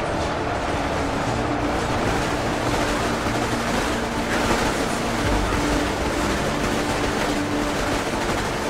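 Many guns fire in rapid, crackling volleys.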